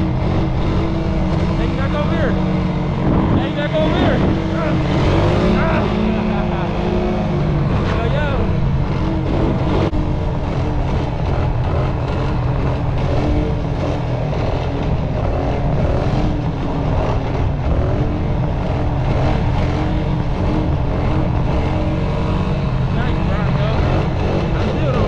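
A quad bike engine revs and roars up close.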